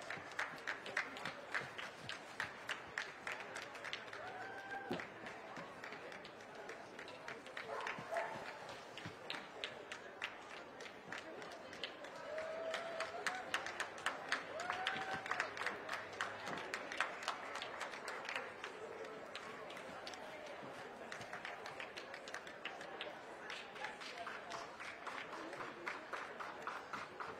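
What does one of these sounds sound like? A crowd claps along steadily.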